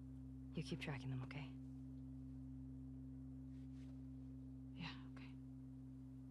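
A young woman speaks quietly and briefly, close by.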